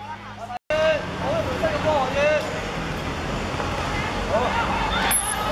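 Young boys shout and call out to each other outdoors.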